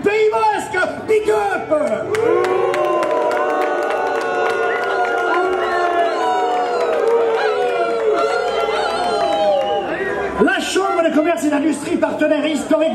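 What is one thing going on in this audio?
An elderly man speaks with animation through a microphone and loudspeakers.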